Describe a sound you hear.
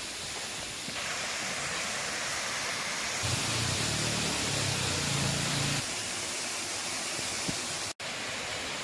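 A waterfall splashes and rushes steadily into a pool.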